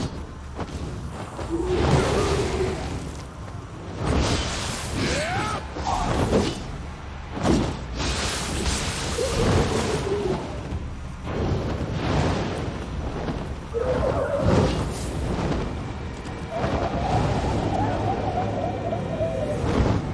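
Blades clash and slash in rapid strikes.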